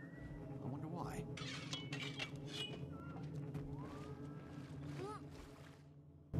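Fighting sound effects whoosh and clash in a game.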